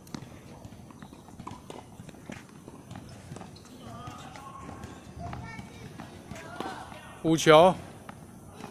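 A tennis ball thuds against a wall.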